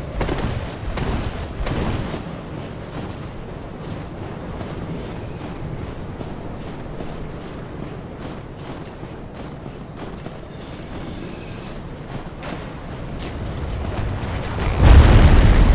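Armoured footsteps crunch quickly over snowy rock.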